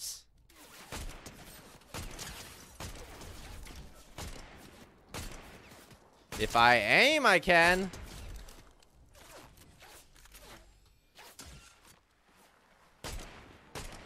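Rifle shots crack from a video game.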